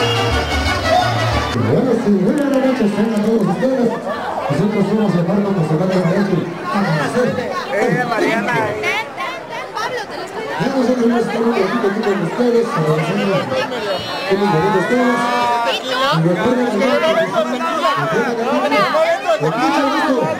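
Many people talk and chatter loudly in a large echoing hall.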